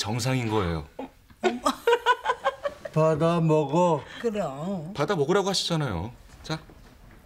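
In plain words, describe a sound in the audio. An elderly man talks with animation.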